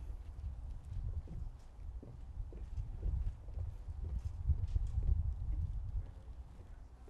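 A man speaks calmly through a microphone and loudspeakers outdoors.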